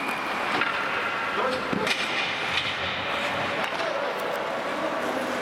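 Hockey sticks click against the puck and the ice.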